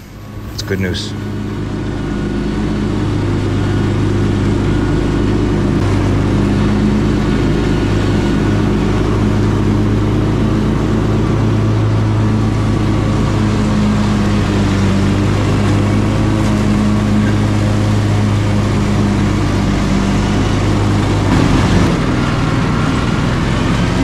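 A riding lawn mower engine hums steadily up close.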